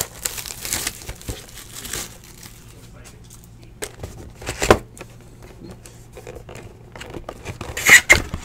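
Hands rub and tap a cardboard box up close.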